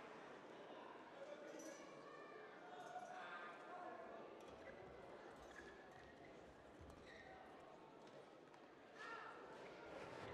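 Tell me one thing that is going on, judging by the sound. Rackets strike a shuttlecock back and forth.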